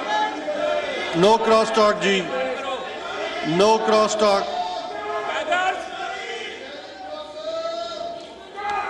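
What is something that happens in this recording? A middle-aged man speaks forcefully through a microphone.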